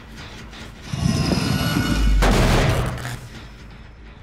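A machine is struck and smashed with a loud, rattling crash.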